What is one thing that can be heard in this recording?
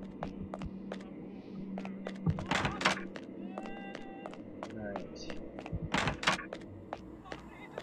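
Footsteps tap on a hard floor at a steady pace.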